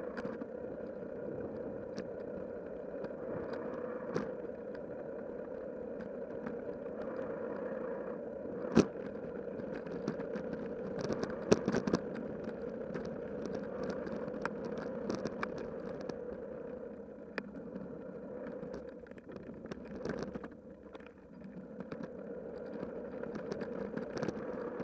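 A bicycle rattles over bumps in the path.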